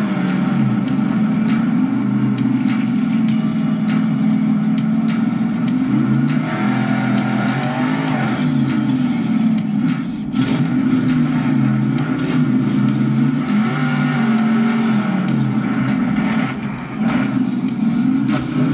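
A steering wheel clicks and rattles under a hand.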